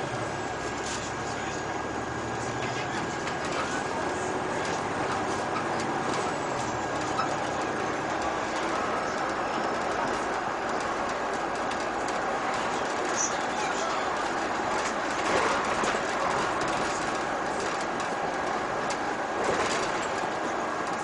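A diesel city bus drives along a street.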